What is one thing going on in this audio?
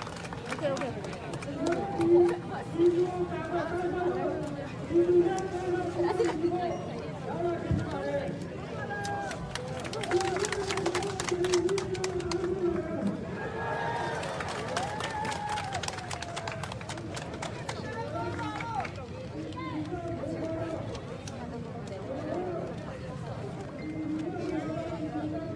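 A large crowd of men and women chants loudly together in rhythm outdoors.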